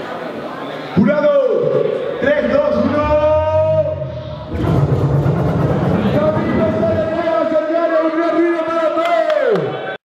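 A man sings loudly into a microphone, holding long notes.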